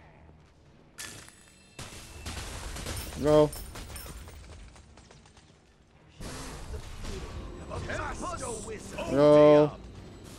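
Magic spell effects whoosh and crackle in a video game.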